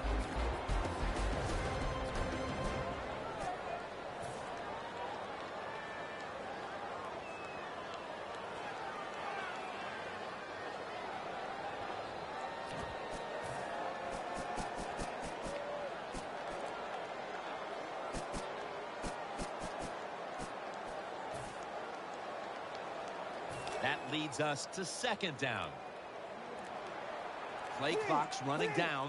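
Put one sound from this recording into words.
A stadium crowd murmurs and cheers steadily in a large echoing space.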